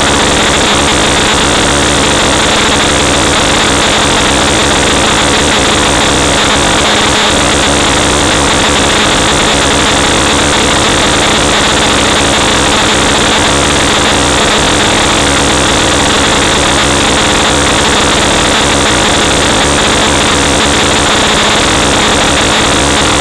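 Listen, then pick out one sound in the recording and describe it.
Harsh electronic noise roars steadily and without a break.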